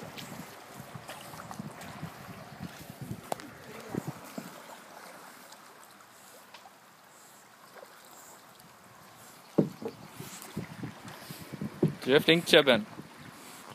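A dog paddles and splashes through water beside a canoe.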